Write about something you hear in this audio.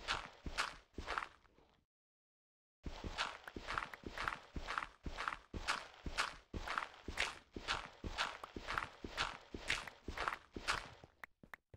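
A shovel digs into dirt with quick, crunchy scrapes.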